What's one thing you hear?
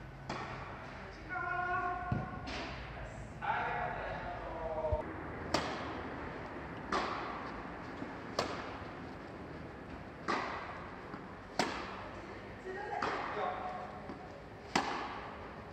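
Tennis rackets hit a ball back and forth, echoing in a large hall.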